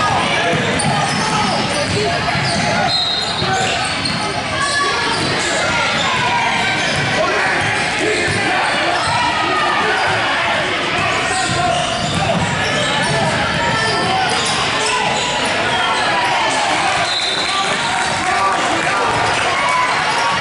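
A crowd of spectators chatters throughout.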